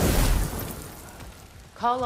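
Flames crackle.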